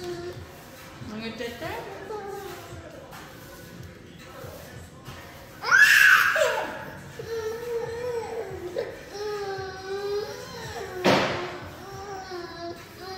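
A young woman talks and sings playfully close by.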